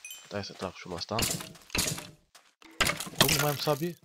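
A sword strikes a skeleton with sharp hits.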